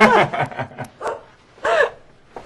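A woman laughs briefly.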